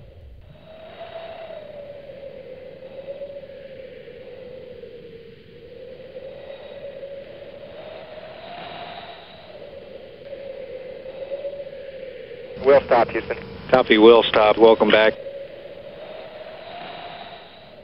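A spacecraft rolls down a runway with a steady, wavering drone.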